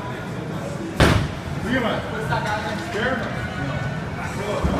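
A bowling ball thuds onto the lane and rolls away.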